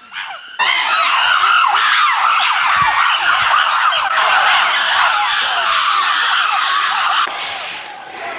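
Chimpanzees scream and shriek loudly and excitedly.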